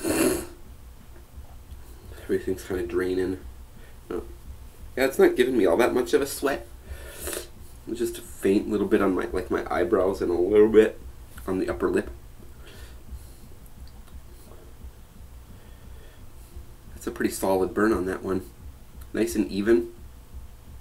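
A young man speaks with animation, close to the microphone, with pauses.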